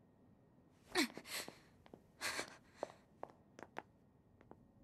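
Footsteps land with soft thuds.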